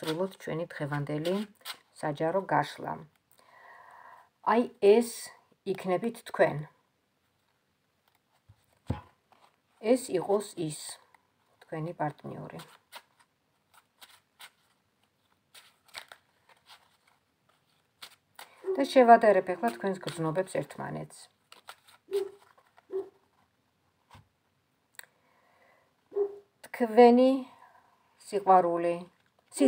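Playing cards rustle and flick as they are handled.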